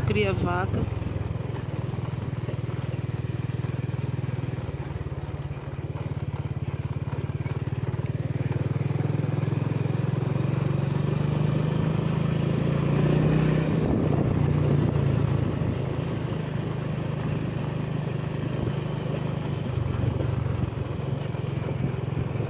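Tyres rumble over a cobbled road.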